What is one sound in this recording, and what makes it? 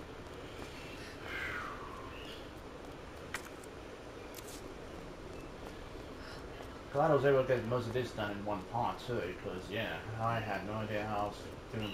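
Footsteps climb hard stairs.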